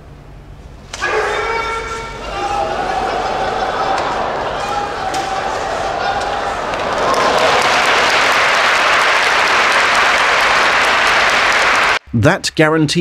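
A large crowd cheers and roars in a big hall.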